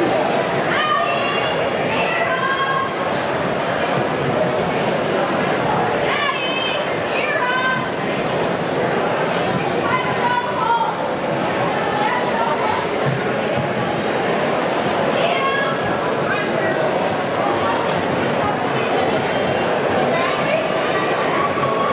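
A large crowd murmurs and cheers in a big echoing hall.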